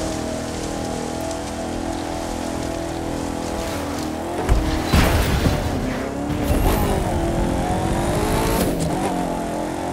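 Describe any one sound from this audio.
An off-road buggy engine drones steadily, its pitch shifting with speed.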